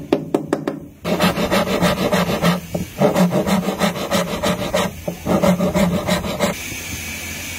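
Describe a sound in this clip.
A file rasps back and forth over metal.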